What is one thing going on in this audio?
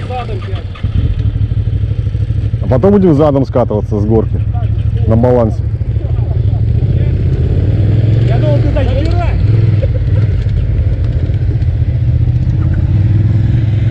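A motorcycle engine idles with a steady low rumble nearby.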